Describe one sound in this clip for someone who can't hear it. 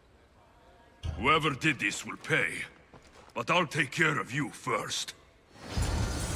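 A young man speaks with a firm voice.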